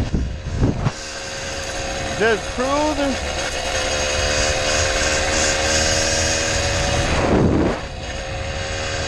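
Wind rushes and buffets steadily past a moving bicycle.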